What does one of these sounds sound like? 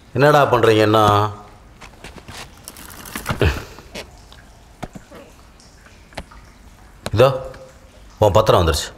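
An adult man speaks nearby, with pauses between his words.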